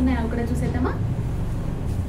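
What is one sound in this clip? A young woman speaks clearly into a close microphone.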